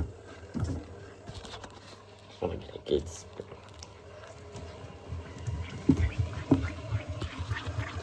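Fabric rustles and thumps as a hand stuffs clothes into a washing machine drum.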